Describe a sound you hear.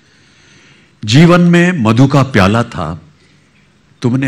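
An elderly man recites slowly and expressively into a microphone.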